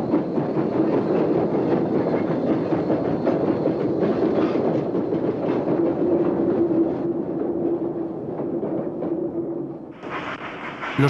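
A small steam locomotive rumbles and chugs along the track.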